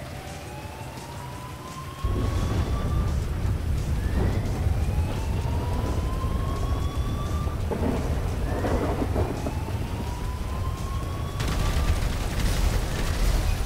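Heavy rain pours steadily outdoors.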